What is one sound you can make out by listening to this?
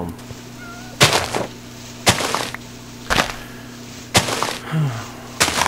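Hay bale blocks break with a crunching sound effect in a video game.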